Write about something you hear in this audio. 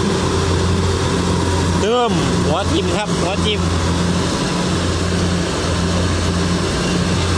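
A combine harvester's engine drones loudly and steadily close by.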